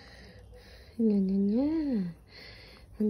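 A small dog lets out a long, wavering howl.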